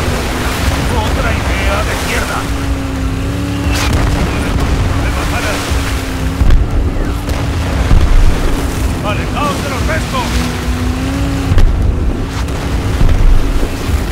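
Water splashes and rushes against a speeding boat's hull.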